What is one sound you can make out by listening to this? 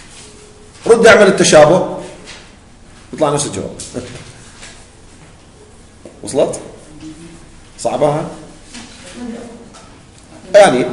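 A man speaks calmly into a close microphone, in short phrases with pauses.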